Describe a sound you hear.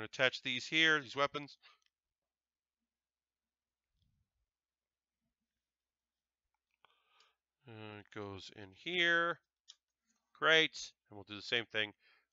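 A man talks casually and close to a microphone.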